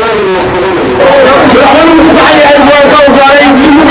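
A second man shouts with animation into a microphone through a loudspeaker.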